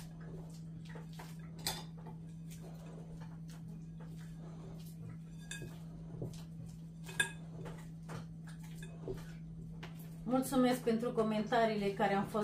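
Hands knead dough in a glass bowl.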